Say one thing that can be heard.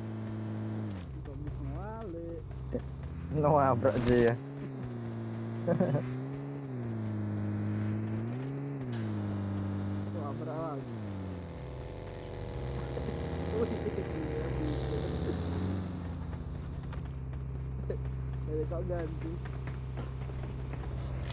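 A motorcycle engine revs up and down as it rides.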